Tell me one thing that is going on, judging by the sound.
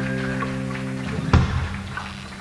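A rock band ends a song with a loud final chord.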